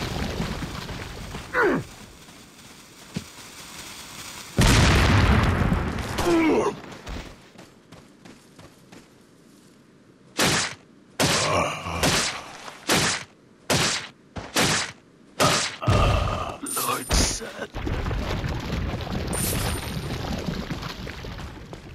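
Footsteps crunch on dirt and leaves.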